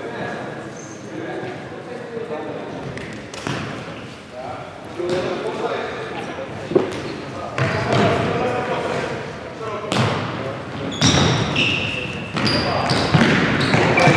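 Men shout to each other in an echoing sports hall.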